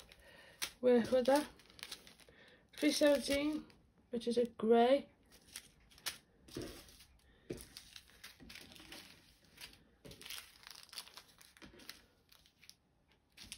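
Plastic bags of beads crinkle and rustle as hands handle them.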